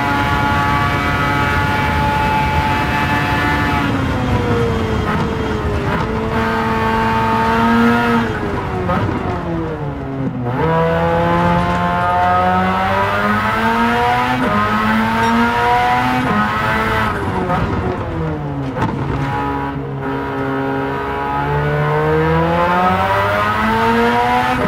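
A racing car engine roars loudly, its pitch falling as it slows and climbing again as it speeds up through the gears.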